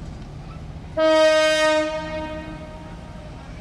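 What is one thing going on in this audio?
A train horn blares loudly, then fades.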